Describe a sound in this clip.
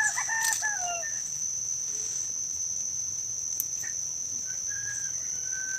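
Leaves rustle softly as a hand brushes through a potted plant.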